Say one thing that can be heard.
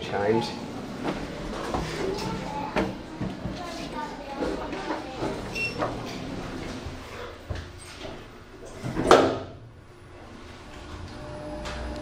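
An elevator hums as it moves.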